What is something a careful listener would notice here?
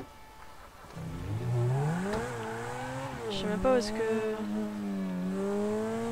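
A sports car engine starts and revs loudly as the car pulls away.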